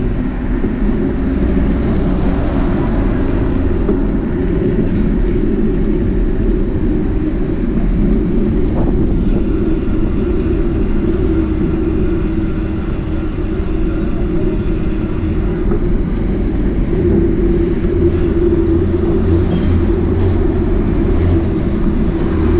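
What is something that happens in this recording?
Wind rumbles heavily against a microphone.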